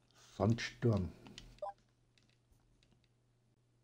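A video game menu chimes as an option is selected.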